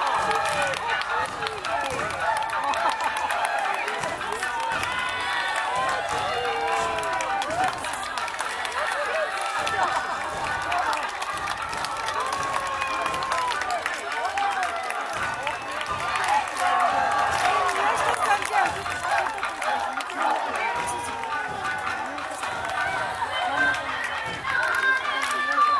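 Dancers chant and call out in rhythm.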